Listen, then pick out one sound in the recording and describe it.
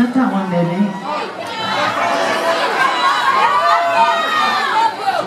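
An electric guitar plays loud and distorted.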